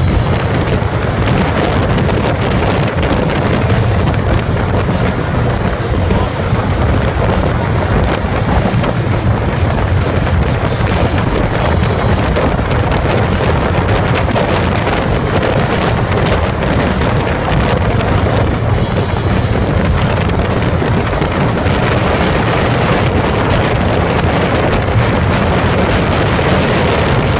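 Wind roars loudly across the microphone outdoors.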